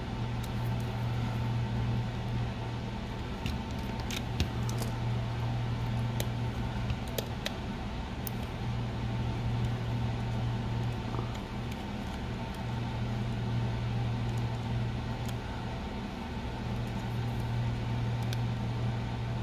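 A plastic pry tool clicks and taps against a plastic case.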